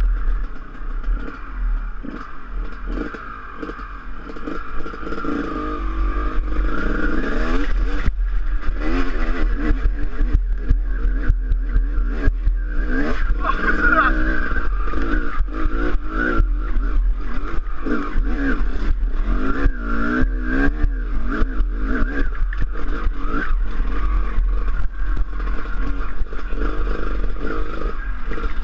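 A dirt bike engine revs and sputters up a steep hill, close by.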